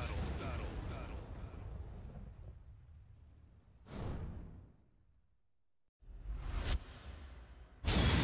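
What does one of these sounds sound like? Deep booming whooshes hit and fade away several times.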